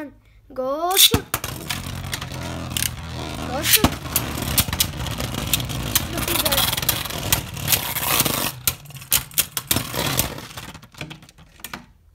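Spinning tops whir and scrape across a plastic dish.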